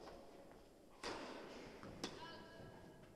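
A tennis ball is struck with a racket and echoes through a large hall.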